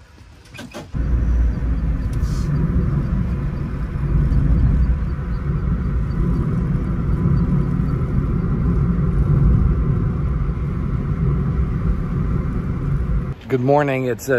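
A car engine hums and tyres rumble on a road.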